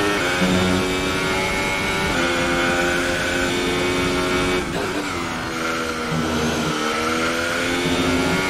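A racing car engine screams at high revs, dropping in pitch with each gear change and rising again.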